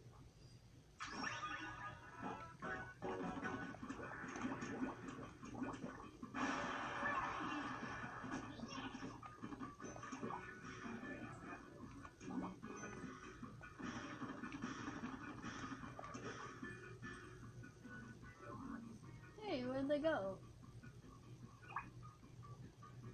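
Video game music and sound effects play from a television's speakers.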